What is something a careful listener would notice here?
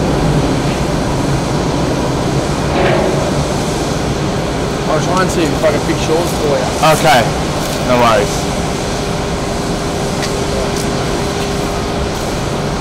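A jet airliner's engines hum steadily in the distance as it taxis.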